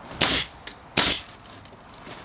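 A nail gun fires sharp bangs into wood.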